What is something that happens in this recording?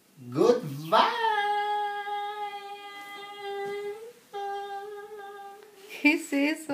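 A young man sings long, held notes.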